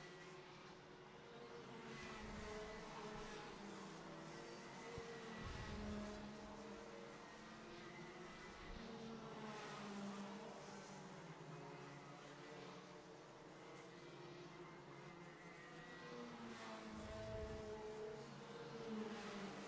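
Kart engines whine and rev as the karts race around the track.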